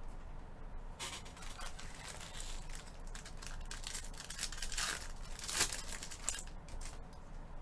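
A foil pack crinkles and tears as hands open it.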